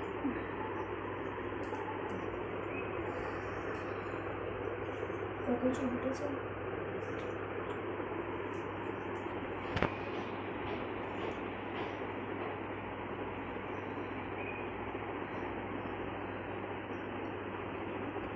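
A comb brushes softly through long hair.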